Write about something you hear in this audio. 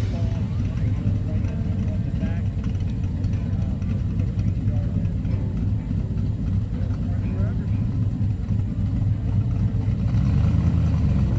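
A car engine idles with a deep, rumbling throb.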